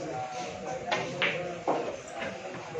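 A cue strikes a billiard ball with a sharp tap.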